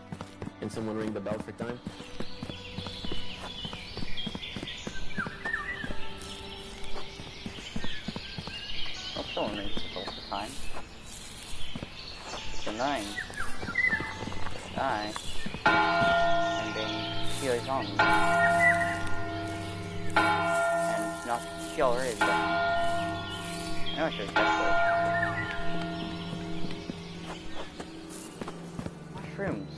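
Footsteps patter quickly on stone and grass.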